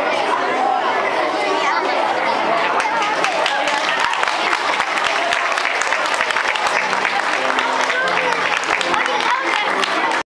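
A crowd of children chatters loudly in an echoing hall.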